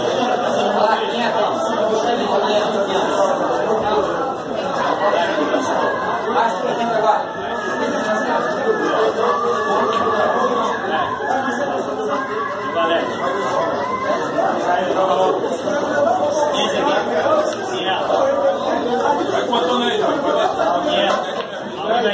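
Several men talk and chatter loudly nearby.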